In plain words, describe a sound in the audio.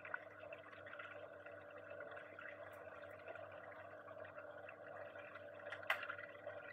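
A diver breathes through a regulator underwater, with bubbling and hissing.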